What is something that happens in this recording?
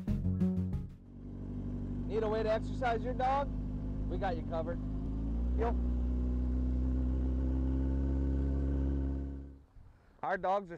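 A motorcycle engine runs and revs up.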